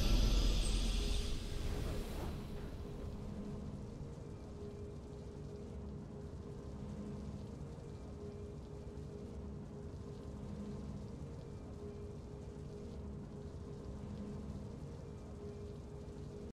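Soft, low game music plays with a slow, pulsing hum.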